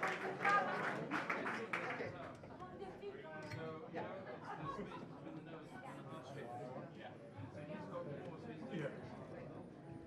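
An electric guitar plays softly.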